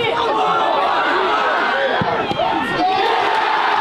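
A football is kicked with a thud.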